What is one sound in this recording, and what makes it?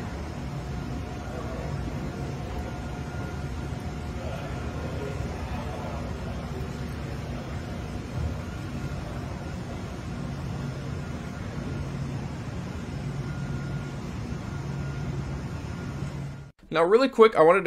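Machinery hums steadily in a large room.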